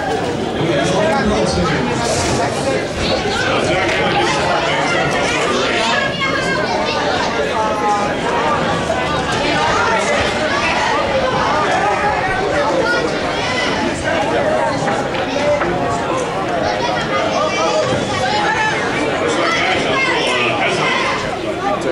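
A crowd chatters and cheers loudly in an echoing hall.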